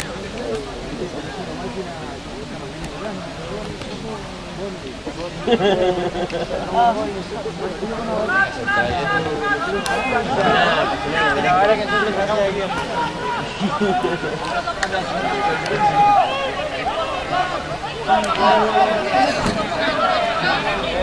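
Young men on the field call out to each other.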